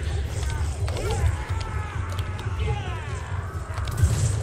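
Rat-like creatures squeal in a video game.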